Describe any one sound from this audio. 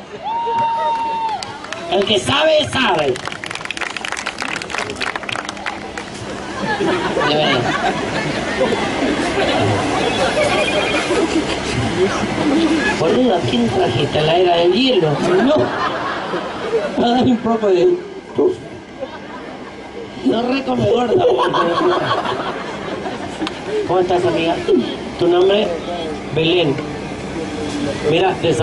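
A large crowd chatters outdoors.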